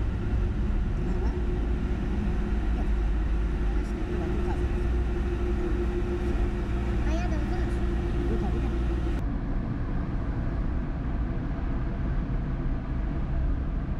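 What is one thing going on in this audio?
Tyres drone steadily on the road.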